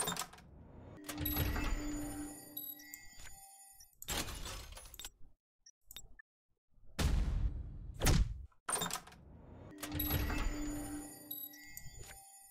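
A video game loot crate bursts open with a whooshing sound effect.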